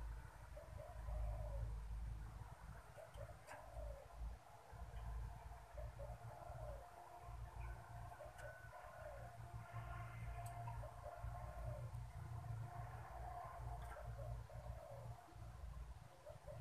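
A dove coos softly and repeatedly close by.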